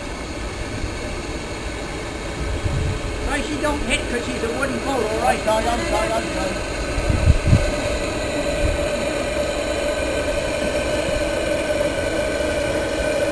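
A boat engine chugs and rumbles steadily.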